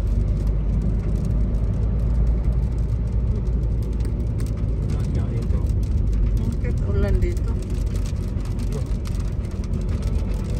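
A car engine hums steadily as tyres roll over the road, heard from inside.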